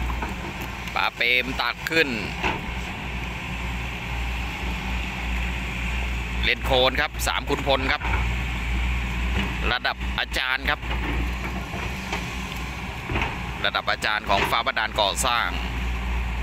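An excavator bucket digs through wet mud.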